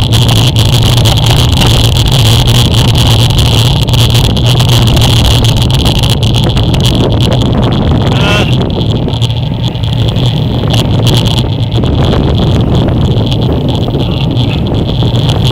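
Wind buffets loudly against a moving bicycle.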